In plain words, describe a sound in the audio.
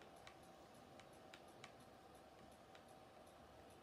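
Soft menu clicks sound from a television speaker.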